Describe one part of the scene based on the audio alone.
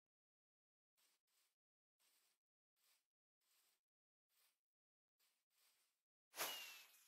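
Footsteps crunch on grass.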